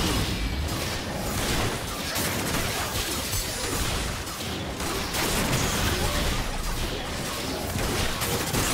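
Spell effects crackle and burst in a fast, busy fight.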